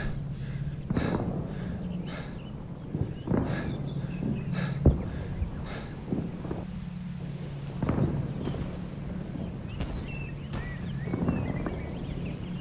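Explosions boom repeatedly in the distance.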